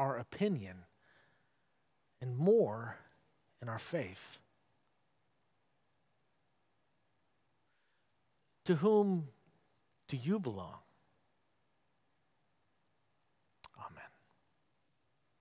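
A middle-aged man speaks slowly and calmly into a microphone, with long pauses, in a quiet echoing room.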